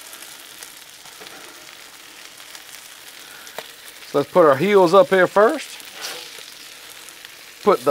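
Burgers sizzle steadily on a hot griddle.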